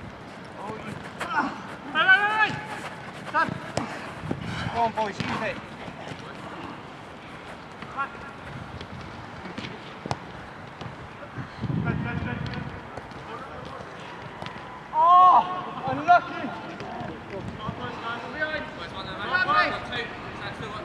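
Men shout to each other across an open pitch outdoors.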